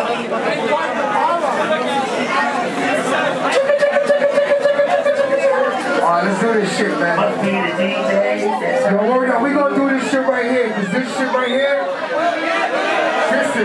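A man raps loudly into a microphone over a loudspeaker.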